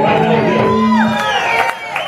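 A man sings into a microphone.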